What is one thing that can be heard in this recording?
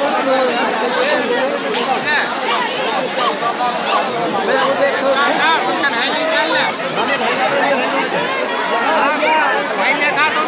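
A dense crowd of men and women chatter and shout loudly all around, close by.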